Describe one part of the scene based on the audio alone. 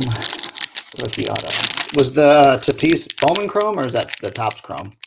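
A foil pack wrapper crinkles and tears open.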